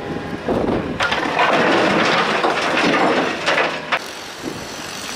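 Rubble clatters into a truck bed.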